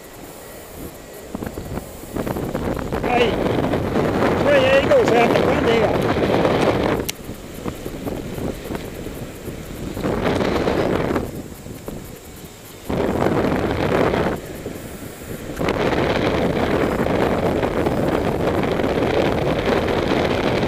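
Wind rushes and buffets in gusts past a paraglider in flight.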